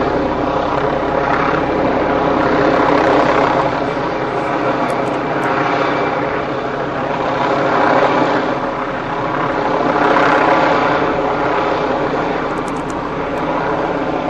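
A helicopter's rotor thumps and roars overhead.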